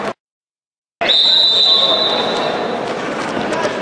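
A referee blows a whistle to start a wrestling bout.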